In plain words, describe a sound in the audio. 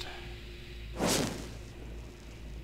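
A magic spell bursts with a sharp whoosh.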